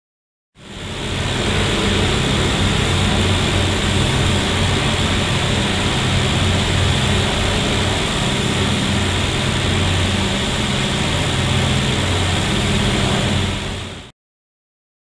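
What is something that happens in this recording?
Propeller aircraft engines drone steadily from outside.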